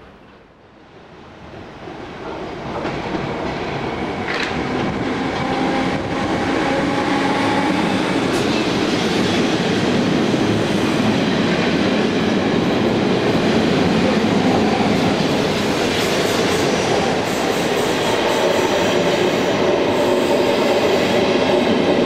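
A passing train rumbles loudly and steadily close by, its noise growing as it nears.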